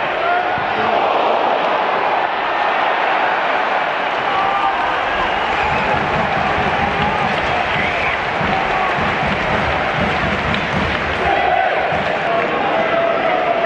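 A crowd of fans sings and chants loudly.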